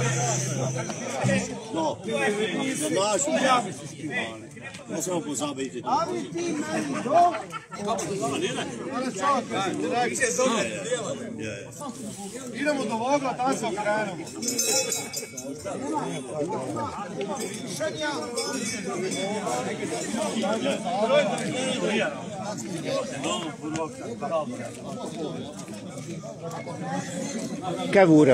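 A small folk band plays guitars and a double bass outdoors.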